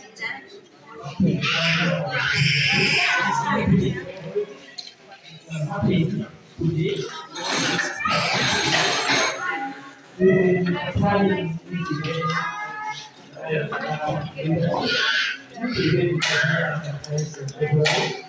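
Men talk nearby in a busy, echoing hall.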